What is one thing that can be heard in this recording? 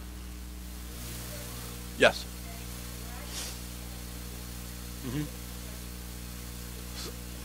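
A man speaks over a microphone in a large echoing room, in short bursts with pauses.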